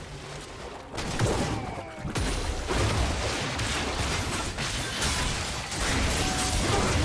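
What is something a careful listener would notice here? Spell effects and weapon hits crash and burst in a fast video game battle.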